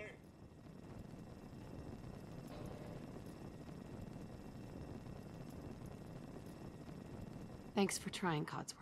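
A hovering robot's thruster hums steadily.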